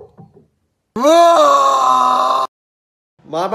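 A young man yells loudly with a long drawn-out cry.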